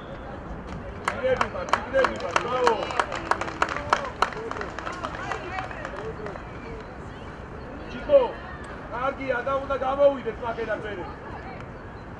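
Young men shout to each other outdoors across an open field.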